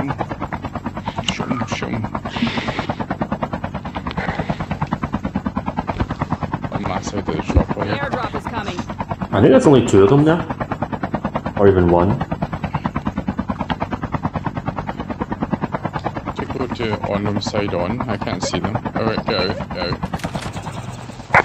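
A small flying machine's rotor whirs with a fast, steady pulsing.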